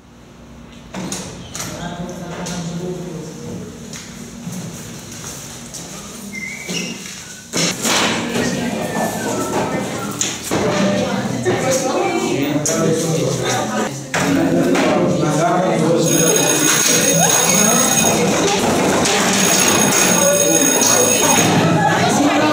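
Young women and men chatter and laugh nearby.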